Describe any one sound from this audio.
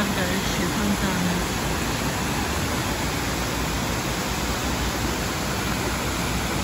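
Fountain water splashes and rushes steadily outdoors.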